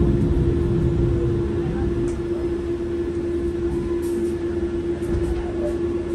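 A bus rumbles low as it rolls to a stop.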